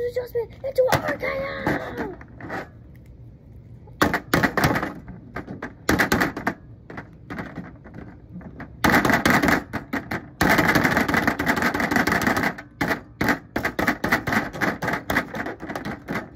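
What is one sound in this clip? Plastic toy figures clatter and thump against a toy ring.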